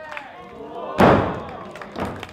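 A wrestler crashes heavily onto a ring mat with a loud thud.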